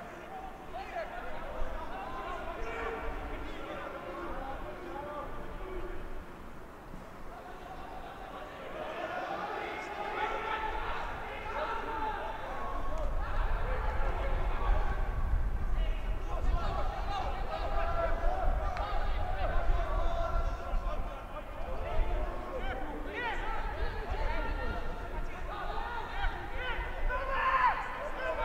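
Men shout and call out to each other outdoors on a sports field.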